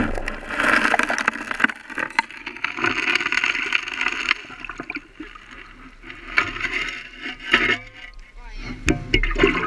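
Wet gravel scrapes and rattles on a metal shovel.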